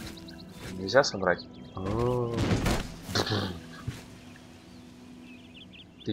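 Footsteps tread on grass and stone.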